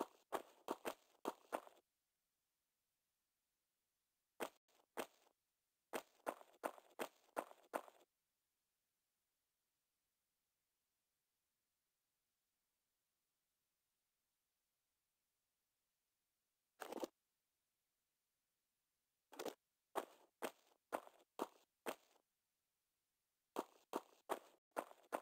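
Quick footsteps slap on a stone floor.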